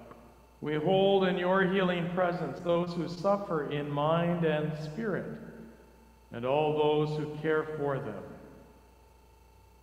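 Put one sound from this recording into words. A man speaks slowly and solemnly through a microphone.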